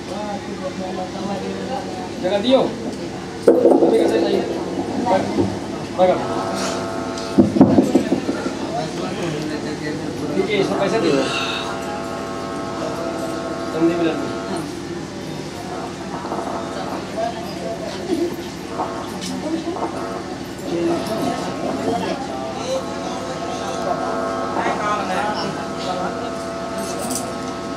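A group of women sing together nearby.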